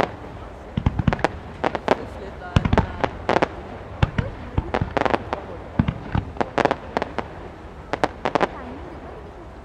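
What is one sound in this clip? Fireworks pop and crackle in rapid bursts.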